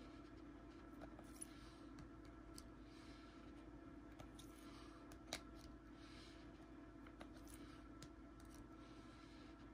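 Rigid plastic card holders click and tap against each other as they are handled.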